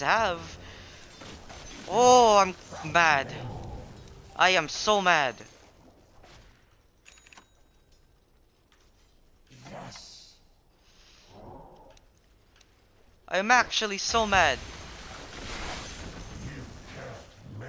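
Magical spell effects whoosh and crackle in a fight.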